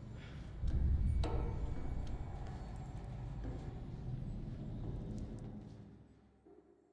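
Footsteps run across a hard floor.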